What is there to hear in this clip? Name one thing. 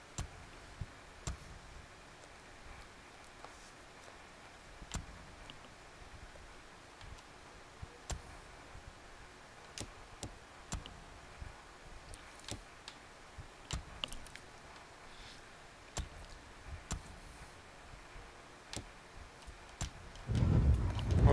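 Menu clicks tick softly as selections change.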